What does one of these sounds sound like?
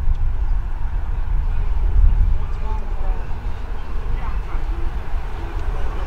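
Men talk and call out faintly in the distance.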